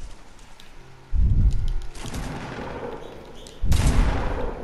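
Wooden ramps snap into place.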